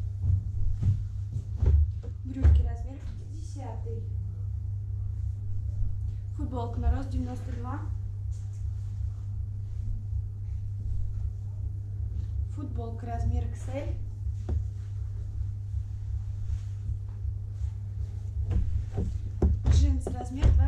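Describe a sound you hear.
Fabric rustles softly as clothes are laid down on a pile.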